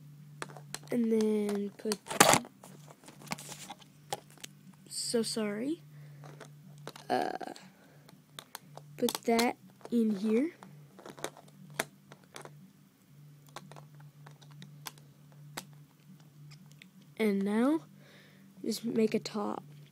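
Plastic toy bricks click and snap together.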